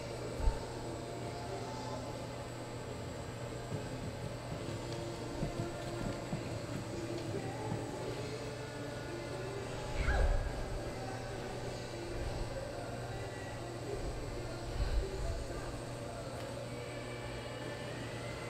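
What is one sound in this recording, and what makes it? A low hum fills a large echoing hall.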